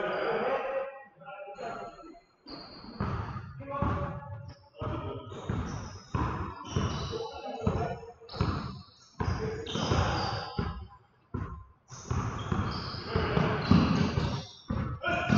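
Men call out to each other across a large echoing gym.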